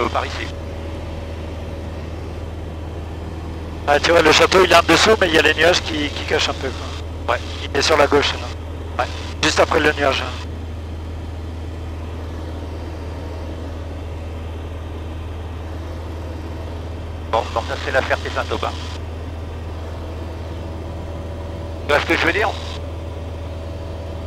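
A small plane's engine drones steadily throughout.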